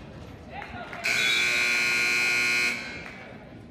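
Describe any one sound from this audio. A referee blows a long, shrill whistle in an echoing gym.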